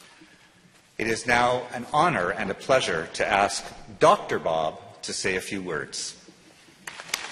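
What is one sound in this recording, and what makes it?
An older man speaks formally into a microphone in a large echoing hall.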